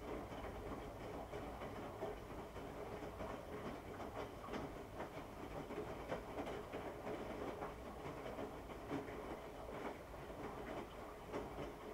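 A washing machine drum turns with a steady low hum.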